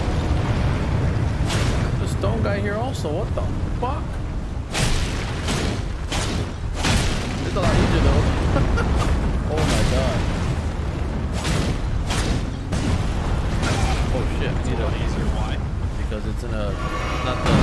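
A sword slashes and clangs.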